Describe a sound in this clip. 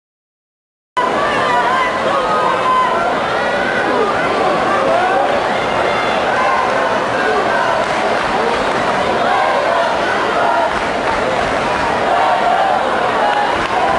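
A brass band of tubas plays loudly in a large echoing hall.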